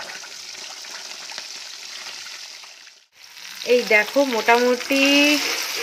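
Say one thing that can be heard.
A metal spatula scrapes against a pan.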